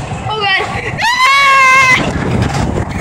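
A young boy screams loudly up close.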